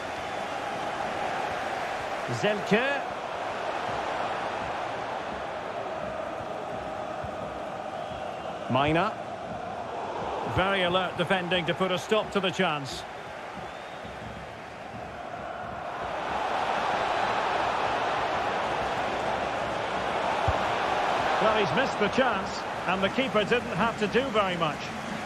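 A large stadium crowd roars and murmurs steadily, swelling louder partway through.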